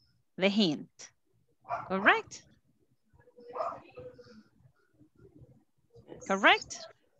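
A woman speaks in short, lively phrases over an online call.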